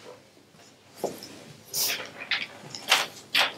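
Pages of a book rustle.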